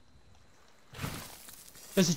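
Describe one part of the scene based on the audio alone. A shovel digs into sand.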